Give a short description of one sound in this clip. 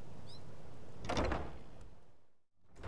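A heavy wooden door creaks open with a loud thud.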